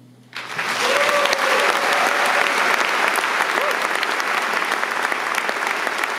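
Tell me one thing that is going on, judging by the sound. An audience claps and cheers in a large hall.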